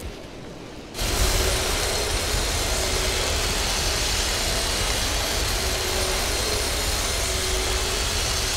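A heavy tank engine starts up and rumbles steadily.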